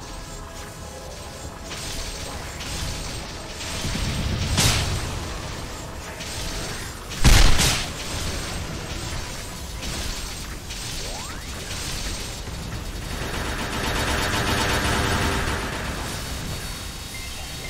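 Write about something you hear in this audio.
Game spell effects crackle and burst repeatedly.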